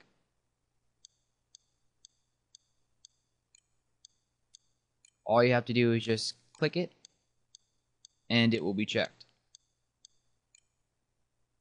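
A computer mouse clicks quickly again and again.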